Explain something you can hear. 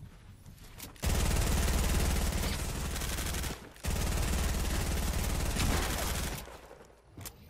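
Loud game building sounds buzz and clatter.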